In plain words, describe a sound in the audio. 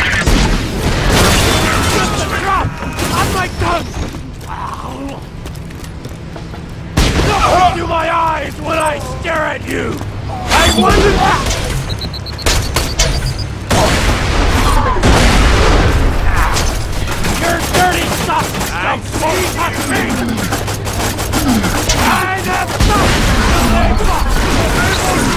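A gun fires in bursts.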